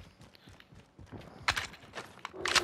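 A rifle magazine clicks out and in during a reload.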